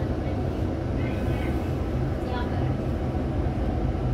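A double-decker bus drives past nearby.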